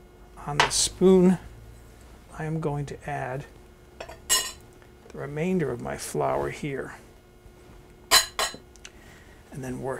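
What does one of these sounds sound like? A glass bowl knocks on a wooden table.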